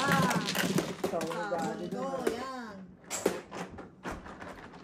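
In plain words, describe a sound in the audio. Game tiles clatter and rattle as hands shuffle them on a table.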